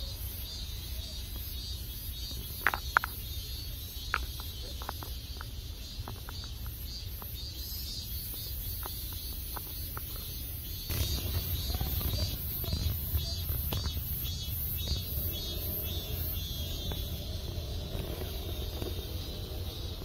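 Small paws patter softly on stone steps outdoors.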